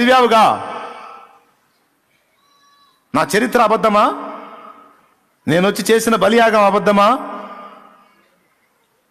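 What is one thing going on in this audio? A man speaks forcefully into a microphone in an echoing hall, in short bursts with pauses.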